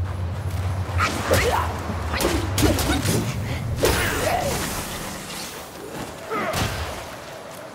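A staff strikes with heavy blows.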